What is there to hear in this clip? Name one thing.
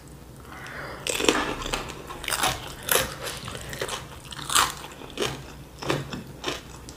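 Crunchy food crackles as fingers pick it from a board.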